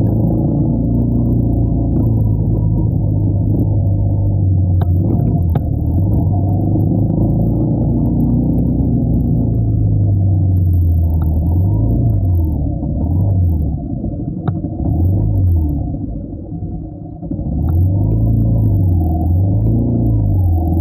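Traffic rumbles along a busy road.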